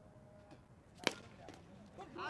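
A hockey stick smacks a ball.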